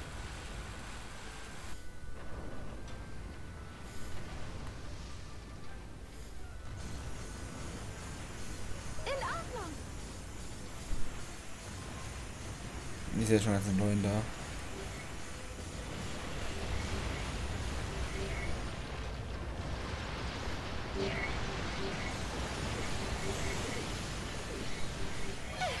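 Energy beams fire with a sizzling hum.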